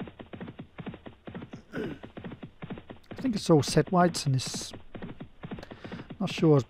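Horses' hooves thud rapidly as they gallop on turf.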